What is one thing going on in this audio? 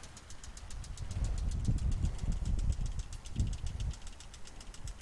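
Wind gusts outdoors, rumbling against the microphone.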